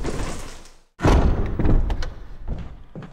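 A heavy door slams shut.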